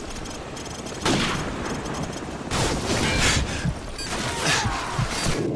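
A weapon's electronic sight switches on with a whir and beeps.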